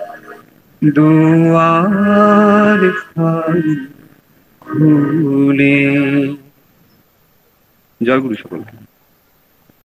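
A young man sings into a close microphone with long held notes.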